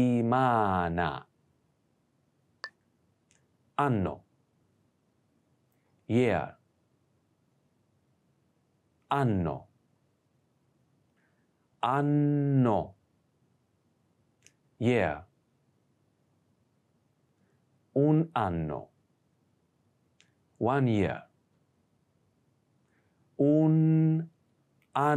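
A man speaks clearly and slowly nearby, saying short phrases with pauses between them.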